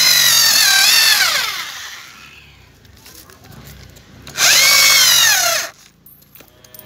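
A power tool's motor whines loudly, then winds down.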